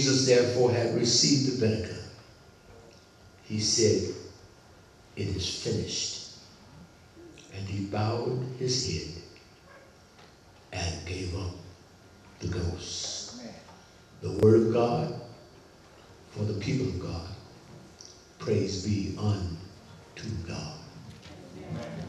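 An elderly man speaks slowly into a microphone in an echoing room, with pauses between phrases.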